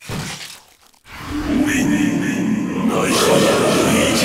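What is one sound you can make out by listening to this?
A sci-fi laser weapon zaps in short bursts.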